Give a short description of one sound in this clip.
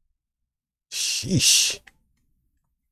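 Video game blows land with sharp, loud smacks.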